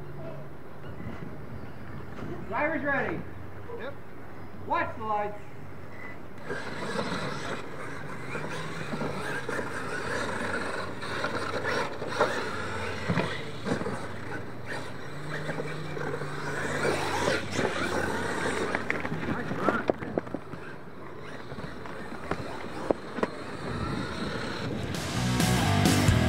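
Electric motors of small remote-control trucks whine as the trucks race over dirt.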